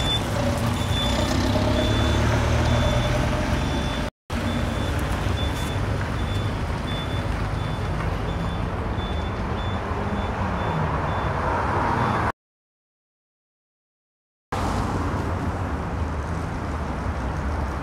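City traffic rumbles steadily outdoors.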